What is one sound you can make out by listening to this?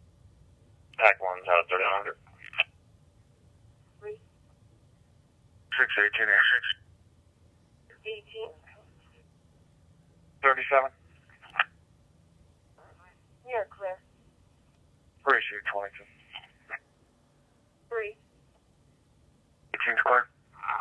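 Short bursts of radio chatter come through a small scanner's loudspeaker.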